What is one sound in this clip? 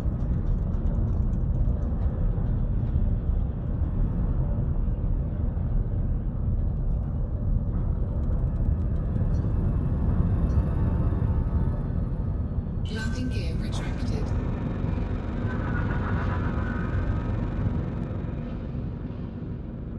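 A spacecraft engine hums with a deep, steady rumble.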